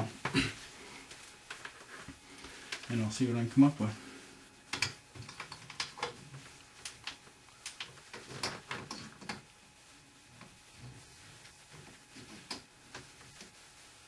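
Small clicks and knocks come from wires and tools being handled close by.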